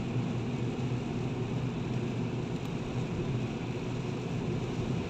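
Rain patters on the windscreen.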